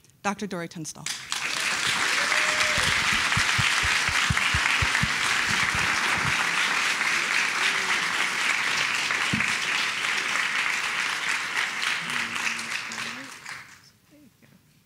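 An audience applauds steadily, then the applause fades out.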